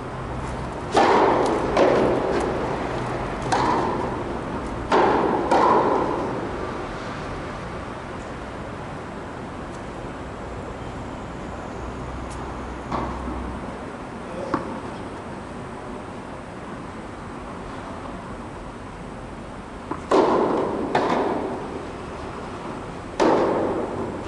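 Tennis rackets strike a ball with sharp pops that echo in a large hall.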